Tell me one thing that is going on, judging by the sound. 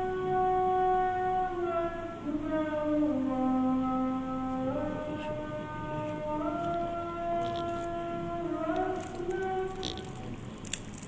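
A man chants in a slow, drawn-out melodic voice close to a microphone.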